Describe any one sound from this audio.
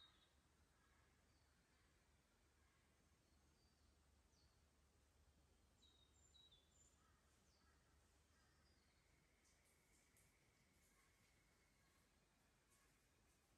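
A shallow creek trickles softly over stones.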